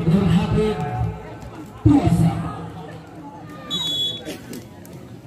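A crowd of spectators shouts and cheers.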